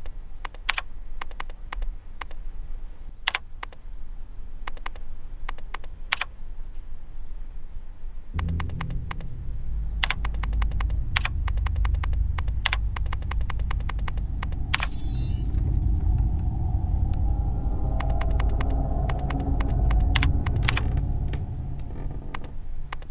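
Short, sharp clicks tick again and again.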